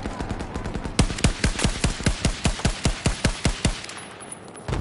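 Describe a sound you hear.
A scoped rifle fires rapid shots.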